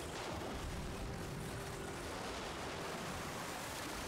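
Water splashes as logs drop into a river.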